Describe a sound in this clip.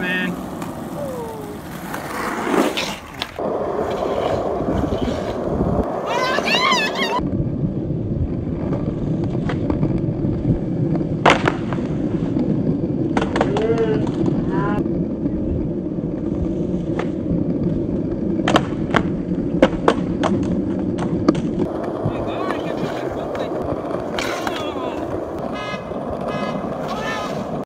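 Skateboard wheels roll and clatter on concrete.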